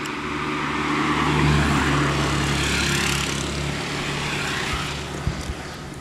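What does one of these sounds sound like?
A motorcycle engine hums as it rides past.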